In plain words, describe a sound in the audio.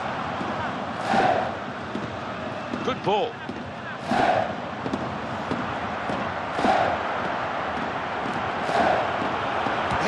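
A football is kicked with dull thumps now and then.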